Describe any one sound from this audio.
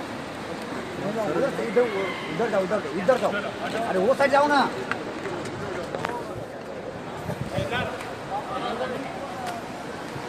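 Men shout excitedly close by.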